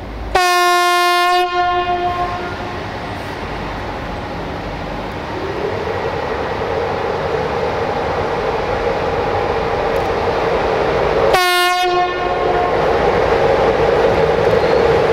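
An electric locomotive hums and rumbles as it approaches.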